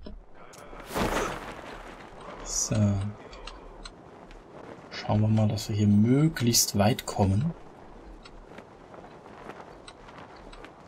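Wind rushes and flaps against a parachute canopy.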